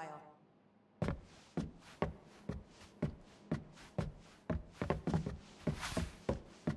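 Footsteps tread across a wooden floor.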